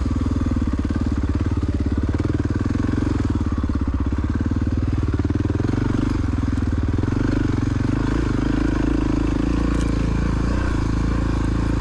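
Tyres crunch over a muddy dirt trail.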